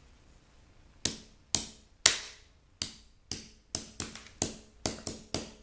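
A hammer strikes a hard object repeatedly with sharp, ringing knocks.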